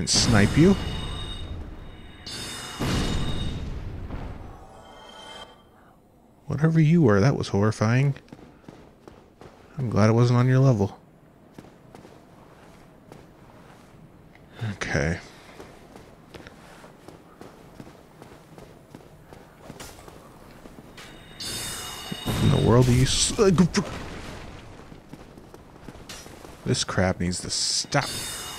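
A magic bolt whooshes and bursts with a bright, ringing hiss.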